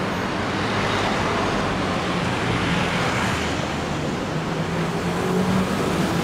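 A motor scooter drives past close by.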